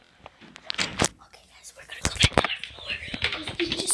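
A young girl speaks close by.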